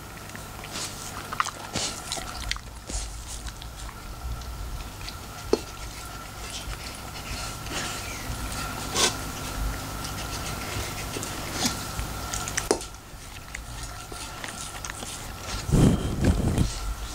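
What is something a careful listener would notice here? A dog eats noisily from a metal bowl, crunching and licking.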